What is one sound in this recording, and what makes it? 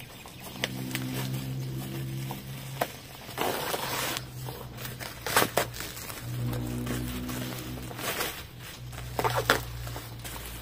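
A plastic mailing bag rustles and crinkles as it is pulled open.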